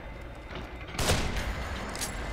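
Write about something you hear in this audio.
A rifle fires a single loud shot with a short echo.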